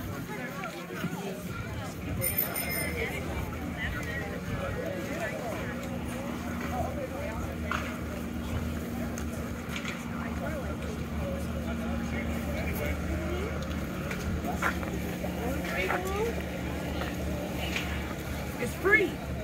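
A crowd of people chatter outdoors in the distance.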